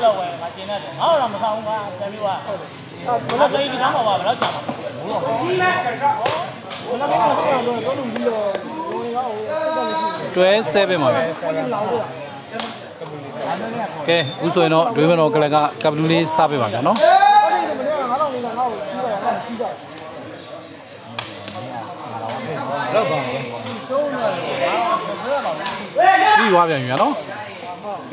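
A crowd of young men chatters and shouts close by.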